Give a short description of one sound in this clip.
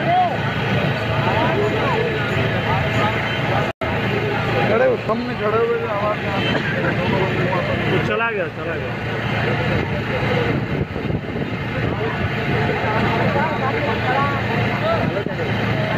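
A crowd of men murmurs and talks over one another.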